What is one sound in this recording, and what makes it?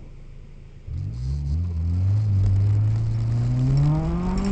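A car engine revs hard and climbs in pitch as the car accelerates, heard from inside.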